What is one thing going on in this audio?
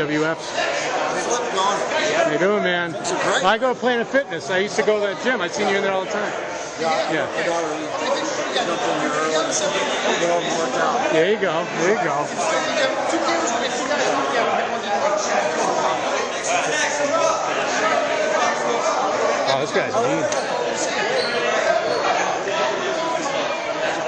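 A crowd of young men chatter and cheer loudly in an echoing room.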